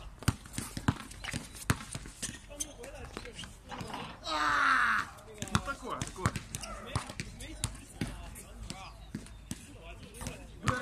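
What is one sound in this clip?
A basketball bounces repeatedly on a hard outdoor court.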